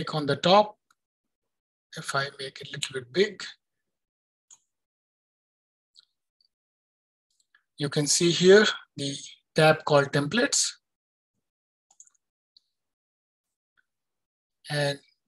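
A man speaks calmly through a computer microphone, as in an online call, with pauses.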